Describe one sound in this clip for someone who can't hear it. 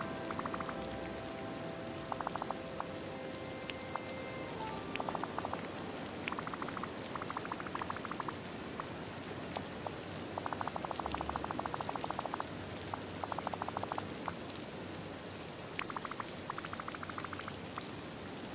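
Quick, soft electronic blips chatter in short bursts.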